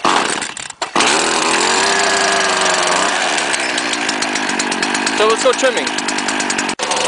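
A small two-stroke engine starts and idles loudly with a buzzing drone.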